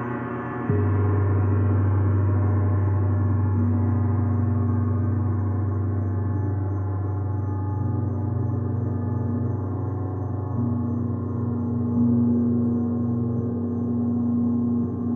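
A large gong hums and shimmers with a deep, swelling drone.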